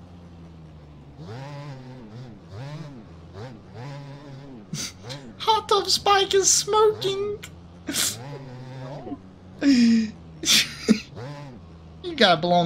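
A dirt bike engine revs up and down repeatedly.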